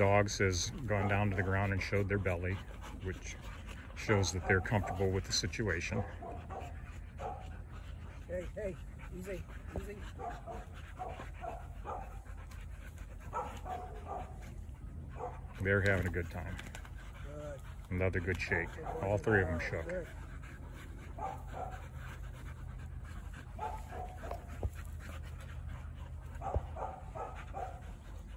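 Dogs growl and snarl as they play-fight close by.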